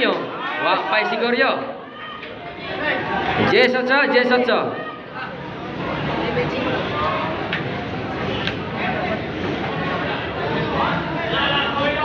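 A large crowd chatters and shouts loudly all around under a big echoing roof.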